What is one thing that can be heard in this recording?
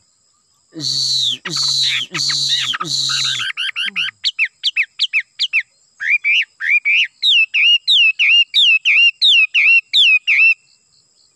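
A bird sings loudly up close, with harsh rasping calls giving way to quick, repeated whistled notes.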